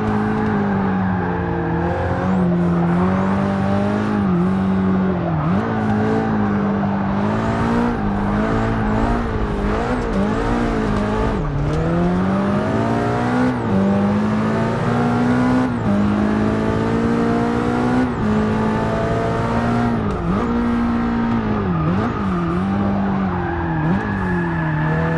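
A racing car engine roars loudly, rising and falling in pitch as the car shifts gears and brakes through corners.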